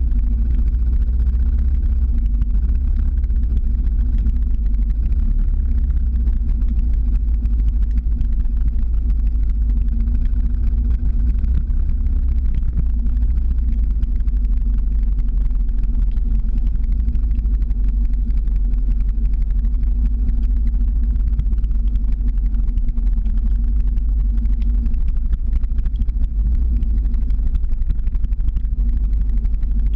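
Skateboard wheels roll and rumble steadily on asphalt.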